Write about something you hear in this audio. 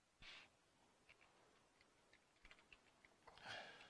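Computer keys click as someone types.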